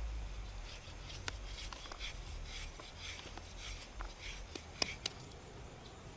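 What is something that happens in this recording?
A knife shaves thin strips from a bamboo shoot with soft scraping sounds.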